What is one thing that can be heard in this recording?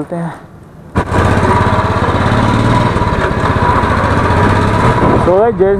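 A motorcycle engine rumbles steadily as the bike rides along a road.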